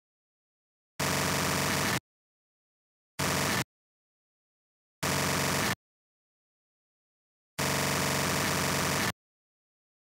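A rapid-fire gun fires in loud, short bursts.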